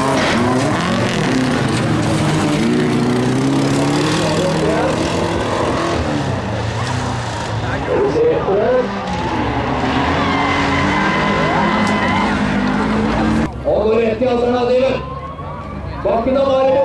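Several racing car engines roar and rev nearby, outdoors.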